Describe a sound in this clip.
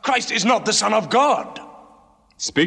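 A man shouts with agitation close by.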